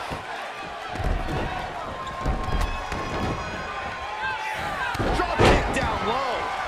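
A body slams heavily onto a wrestling mat with a thud.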